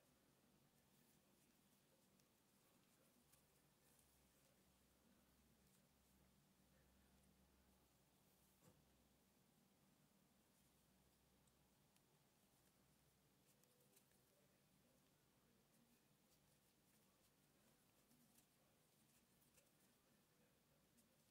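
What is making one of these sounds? A crochet hook clicks and ticks softly against thread.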